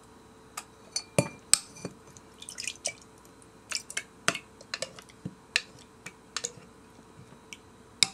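Milk pours into a glass.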